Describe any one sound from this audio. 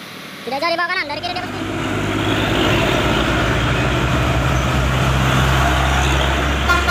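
Heavy truck engines rumble loudly as trucks drive past.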